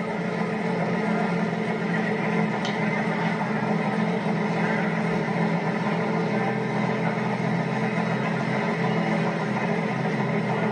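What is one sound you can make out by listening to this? Drag racing motorcycle engines idle with a loud, steady rumble.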